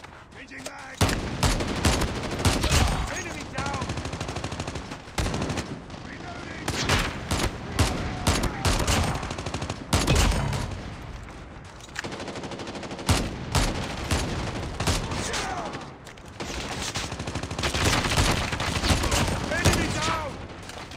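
Sniper rifle shots crack and boom with a heavy echo.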